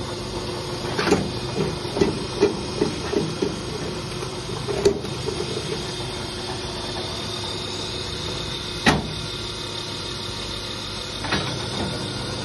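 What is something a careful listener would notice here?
Metal levers clank and knock on a machine.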